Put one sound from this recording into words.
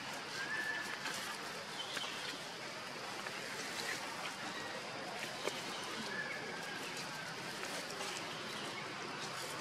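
Dry leaves rustle softly as a baby monkey handles them.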